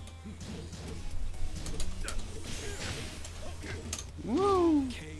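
Fighting game punches and kicks land with sharp smacks.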